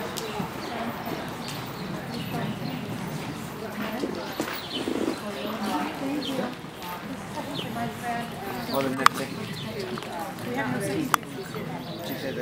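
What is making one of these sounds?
A young girl speaks calmly close by.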